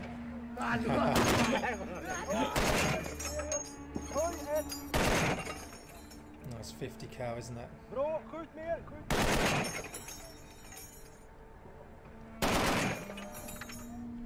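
Heavy gunfire booms in loud single shots.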